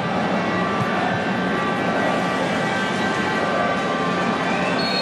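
A large indoor crowd cheers and chants loudly in an echoing arena.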